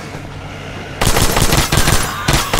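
A heavy gun fires in loud rapid bursts.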